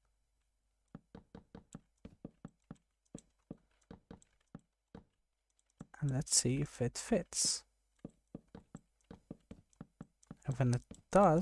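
Blocks click softly as they are placed, one after another, in quick taps.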